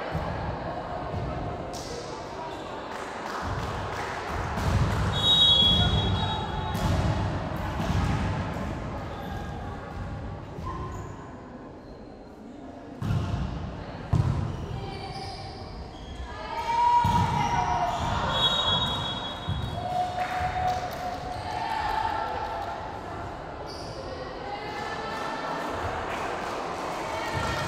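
Young girls shout and call to each other in a large echoing hall.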